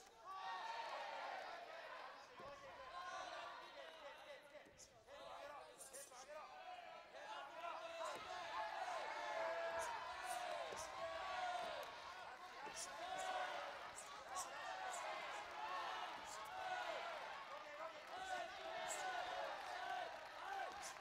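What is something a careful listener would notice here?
A large crowd shouts and cheers in an echoing arena.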